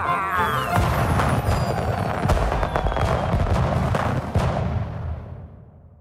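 Fireworks crackle and burst overhead.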